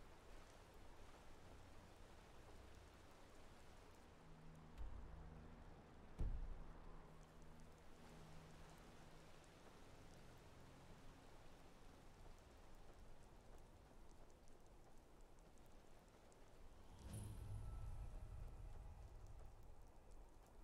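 Footsteps crunch on gravel and grass.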